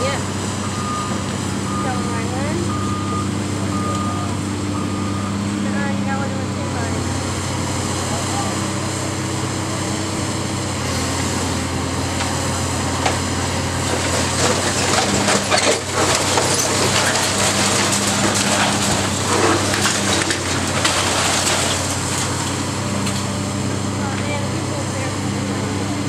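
A heavy demolition machine's diesel engine rumbles steadily.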